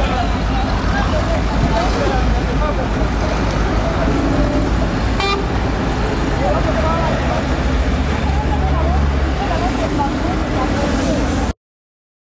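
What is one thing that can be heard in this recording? A crowd of men and women talks and shouts nearby outdoors.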